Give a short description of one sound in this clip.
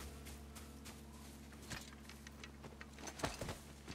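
Hands grip and climb a creaking wooden wall.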